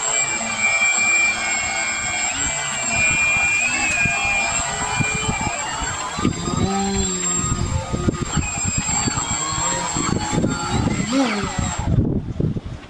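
A small electric motor whirs steadily.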